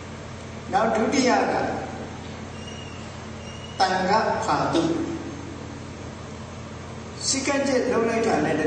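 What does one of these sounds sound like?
An elderly man speaks calmly and slowly into a microphone, in short phrases with pauses.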